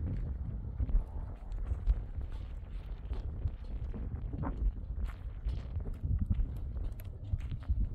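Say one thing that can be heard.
Goat hooves step on stony ground.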